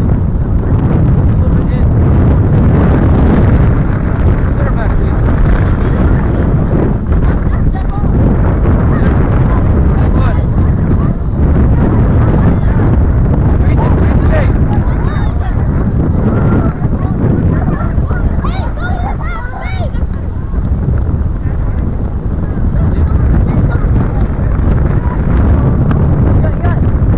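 Wind rumbles steadily across an open outdoor space.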